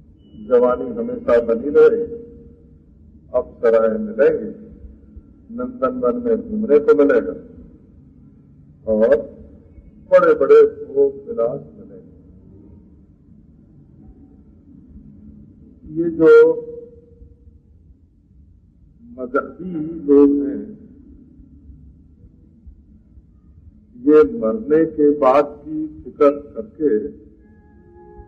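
An elderly man speaks calmly in short phrases with pauses.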